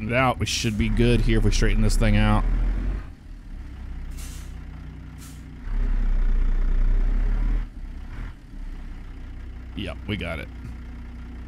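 A truck engine rumbles low and steadily, growing louder at times.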